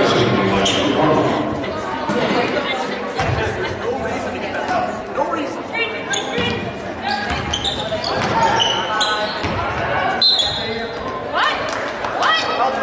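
Spectators talk among themselves nearby in a large echoing gym.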